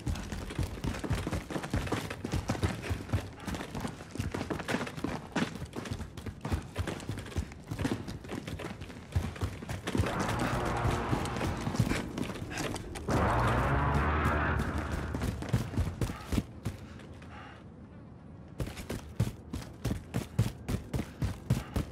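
Footsteps thud quickly on hard floors and stairs.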